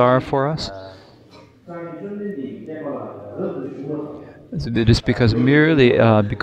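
A man speaks calmly and deliberately through a microphone.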